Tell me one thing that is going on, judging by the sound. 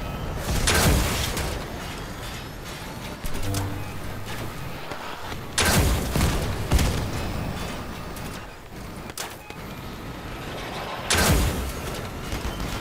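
An armoured vehicle's engine rumbles.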